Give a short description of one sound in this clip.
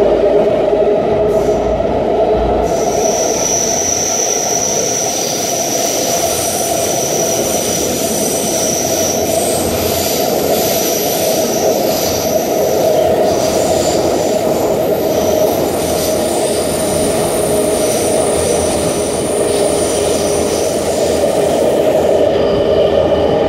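A subway train rumbles and roars loudly through a tunnel.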